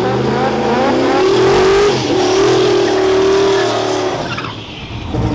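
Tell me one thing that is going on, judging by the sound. Tyres screech as they spin on the track.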